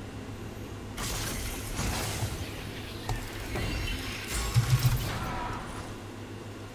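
Video game spells and attacks whoosh and crackle.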